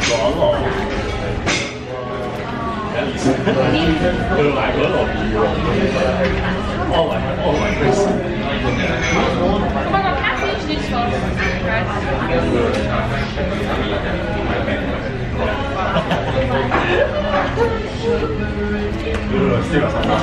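A man talks animatedly close to the microphone.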